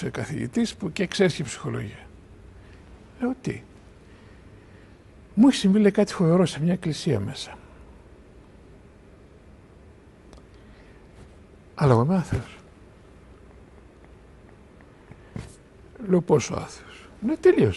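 An older man speaks calmly and thoughtfully in short bursts, close to a microphone.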